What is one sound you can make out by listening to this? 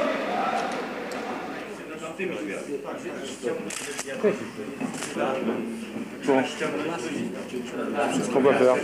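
Several men talk over one another in a crowded room.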